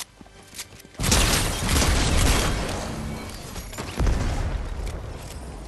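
Shotgun blasts boom loudly and echo.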